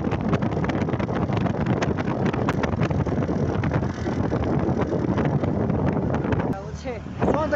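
Wind buffets a microphone on a moving motorbike.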